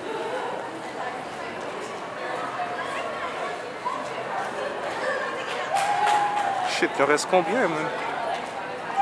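A crowd of young people chatters in an echoing hall.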